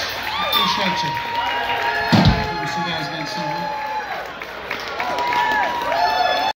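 A live band plays amplified rock music with electric guitars.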